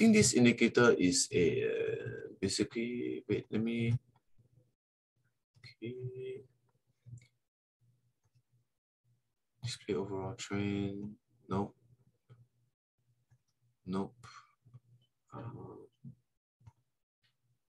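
A man speaks calmly into a microphone, heard as if over an online call, with pauses.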